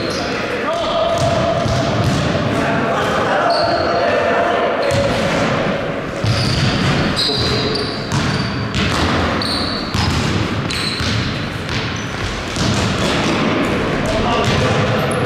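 Young players shout and call out to each other in an echoing hall.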